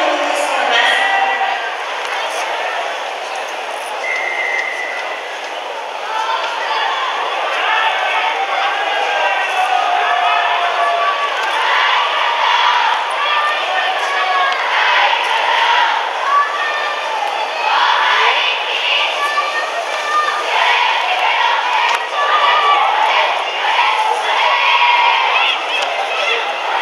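A large crowd in an open stadium cheers and shouts.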